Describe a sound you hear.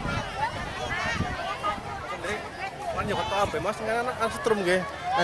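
A crowd of people chatter loudly outdoors.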